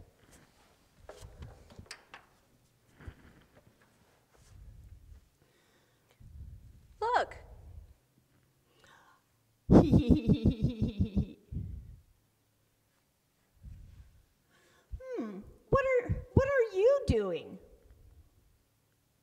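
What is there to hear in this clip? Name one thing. A woman voices puppet characters in playful, changing tones.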